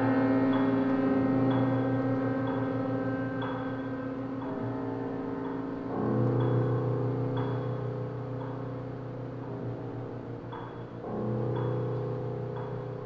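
A cello plays deep sustained notes.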